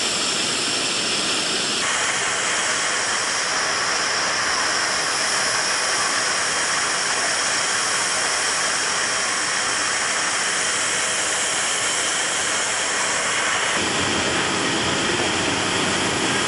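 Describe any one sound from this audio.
Jet engines roar loudly and steadily nearby.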